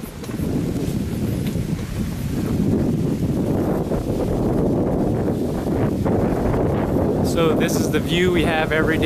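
Wind blows and rumbles across the microphone outdoors.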